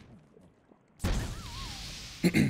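A soft puff bursts with a sparkly chime.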